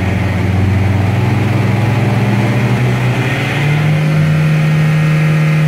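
A car engine revs hard, its drone rising in pitch.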